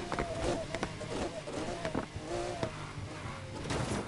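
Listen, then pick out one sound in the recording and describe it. Tyres screech as a car drifts around a bend.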